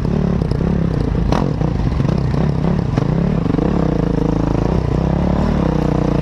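Branches and grass brush and snap against a motorcycle.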